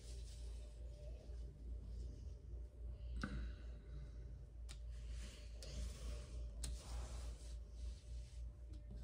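Cards slide and tap softly on a table.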